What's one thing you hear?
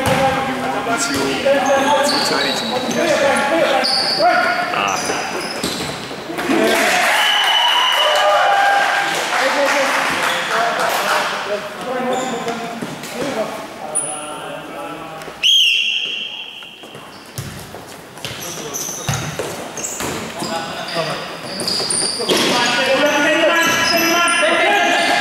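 Sneakers squeak sharply on an indoor court.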